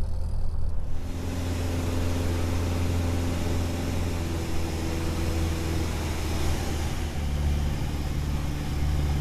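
Air rushes loudly past a plane's cabin.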